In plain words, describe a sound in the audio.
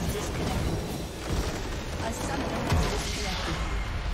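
A huge crystal shatters with a deep, booming explosion.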